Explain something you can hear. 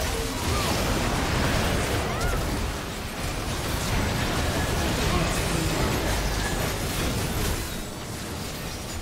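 Magic blasts and clashing hits crackle in a busy video game battle.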